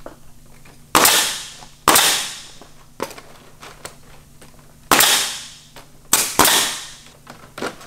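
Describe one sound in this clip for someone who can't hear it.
A nail gun fires with sharp loud bangs.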